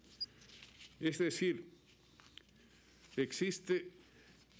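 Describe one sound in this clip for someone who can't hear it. An elderly man speaks calmly into a microphone, reading out.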